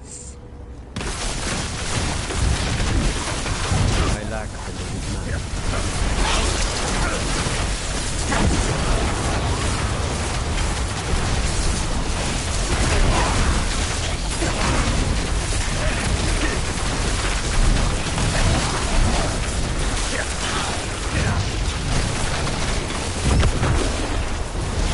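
Game spell blasts and crackling impacts clash and boom over and over.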